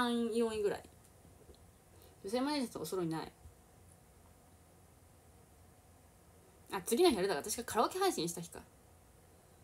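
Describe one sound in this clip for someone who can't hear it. A young woman speaks casually and close by, in short bursts.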